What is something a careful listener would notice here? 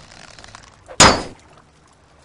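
A heavy blade strikes with a sharp clang.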